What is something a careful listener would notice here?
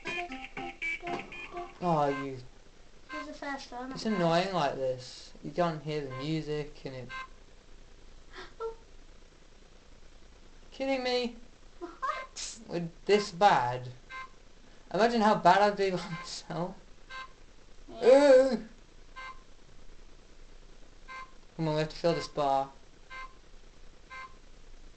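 An electronic game gives short, sharp beeps.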